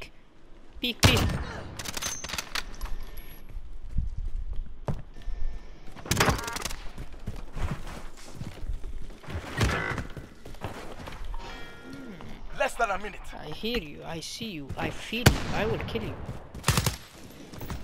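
A rifle fires loud, sharp shots that echo briefly.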